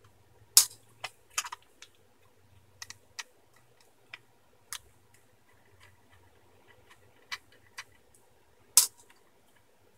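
A screwdriver clicks against metal screws.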